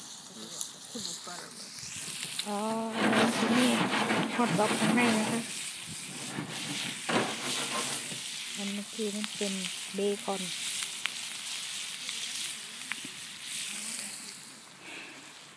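A fire hisses and crackles close by.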